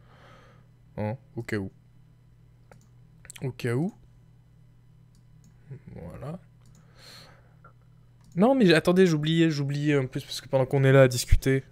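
A young man talks into a microphone, close up, in short bursts and then with animation.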